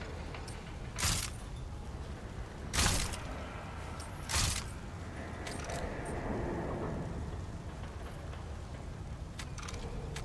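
Menu clicks sound as items are selected.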